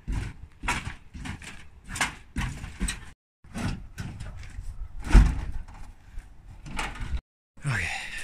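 Metal panels clatter and scrape as they are handled.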